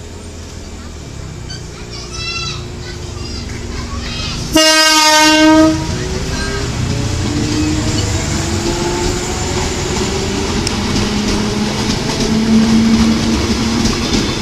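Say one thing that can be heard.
An electric train rumbles past close by on the rails.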